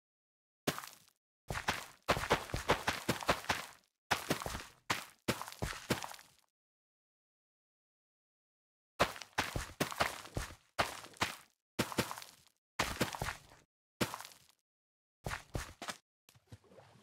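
Crops snap and rustle as they are pulled up in quick bursts.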